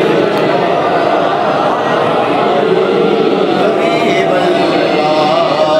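A man chants in a melodic voice through a microphone.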